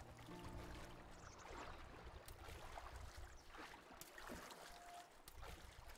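Water splashes as a game character wades through a river.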